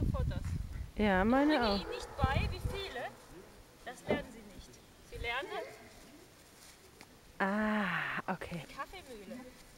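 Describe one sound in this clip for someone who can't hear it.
A woman talks to a dog outdoors.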